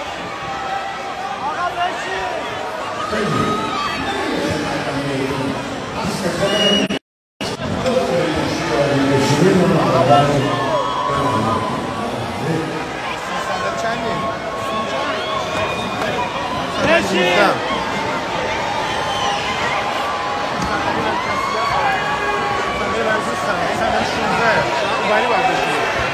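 A crowd sings along and cheers loudly.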